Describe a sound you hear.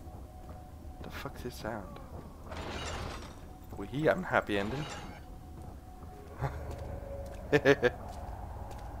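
A young man speaks close into a headset microphone.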